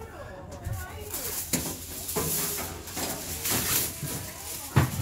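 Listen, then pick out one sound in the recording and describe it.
Aluminium foil crinkles and rustles loudly close by.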